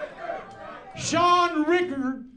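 An elderly man speaks excitedly into a microphone.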